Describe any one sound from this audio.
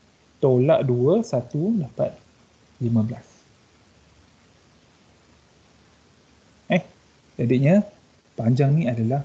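A young man speaks calmly through an online call, pausing between phrases.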